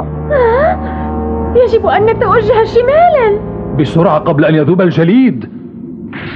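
A young boy speaks with animation.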